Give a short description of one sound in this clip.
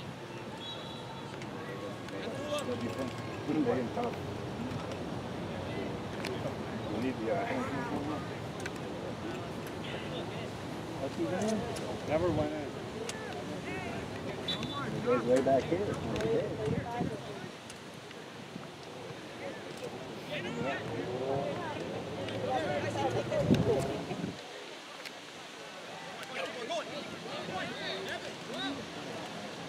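Men and boys shout and call out across an open field.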